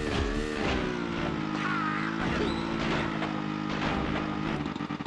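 Tyres crunch through snow.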